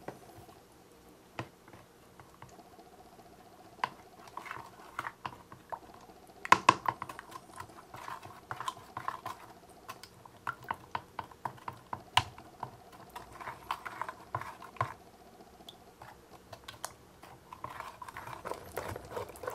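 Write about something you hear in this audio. Water swishes and sloshes as it is stirred.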